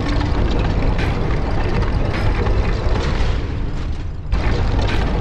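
A heavy stone mechanism grinds and rumbles as it is turned.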